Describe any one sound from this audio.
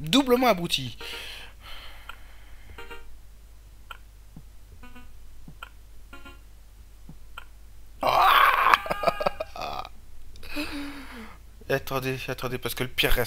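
A cricket bat knocks a ball with a sharp crack.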